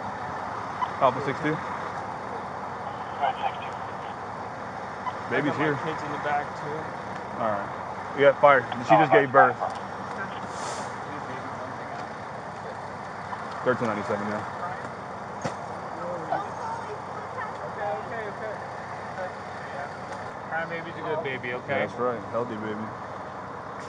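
A man speaks loudly and urgently close by.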